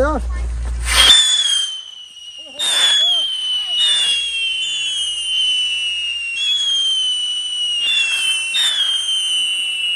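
Firecrackers pop with sharp bangs.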